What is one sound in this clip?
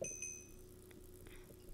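A short electronic chime rings twice.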